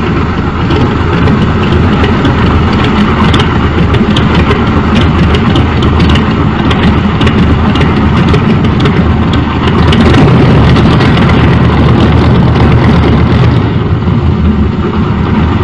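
A propeller plane's engine roars steadily nearby, growing a little louder partway through.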